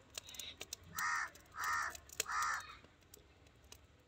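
Oil pours and splashes into a metal pan.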